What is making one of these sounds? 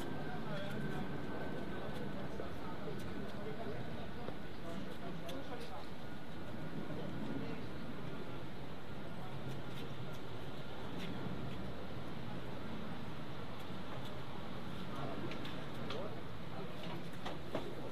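Footsteps scuff and tap on stone steps.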